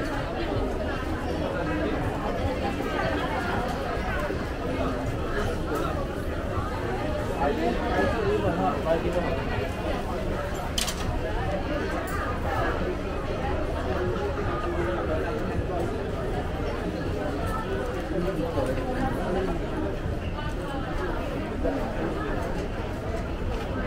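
A crowd of shoppers chatters throughout in a large, echoing indoor space.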